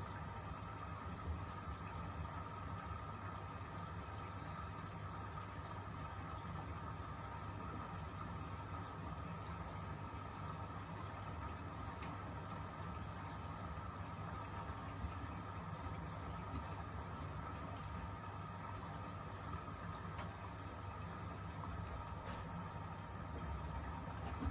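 Wet laundry sloshes and thumps softly inside a turning drum.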